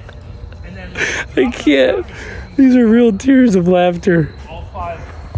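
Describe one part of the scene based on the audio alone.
A young man laughs loudly close to the microphone.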